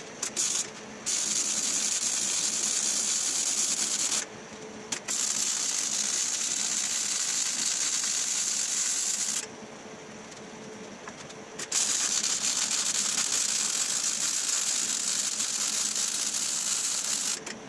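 A MIG welder crackles and sizzles on steel in short bursts.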